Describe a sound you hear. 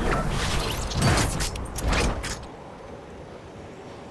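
A glider snaps open.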